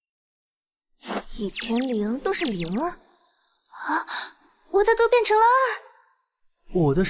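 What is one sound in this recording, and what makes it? A young woman speaks with animation, heard close.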